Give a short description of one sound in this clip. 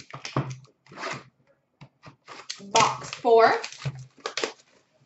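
Small cardboard boxes knock and rustle as they are handled.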